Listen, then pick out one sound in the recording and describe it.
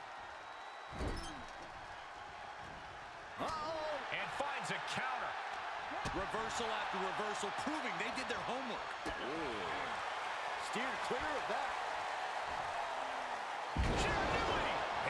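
Bodies slam onto a wrestling mat with heavy thuds.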